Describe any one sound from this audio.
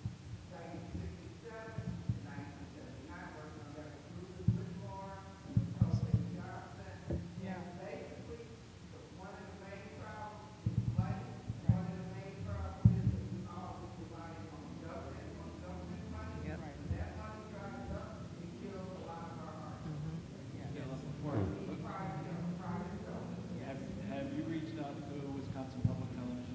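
A woman speaks calmly into a microphone, heard through loudspeakers in a large, echoing room.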